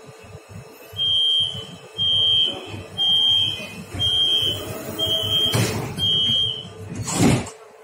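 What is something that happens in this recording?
A door warning chime beeps repeatedly.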